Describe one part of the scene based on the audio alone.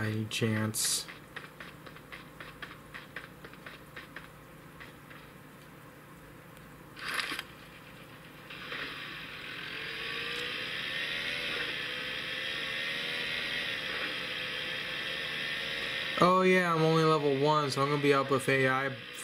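Game sound effects play from a small phone speaker.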